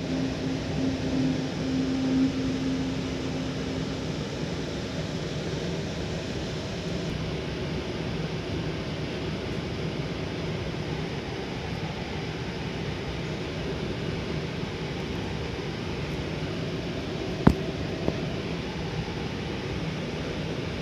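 A train rumbles slowly along the tracks with a low steady hum.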